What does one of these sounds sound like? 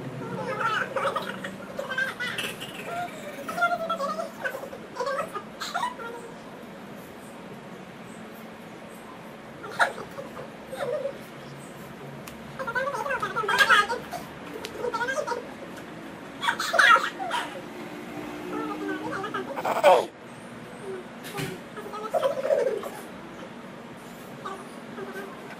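Young girls talk and giggle close by.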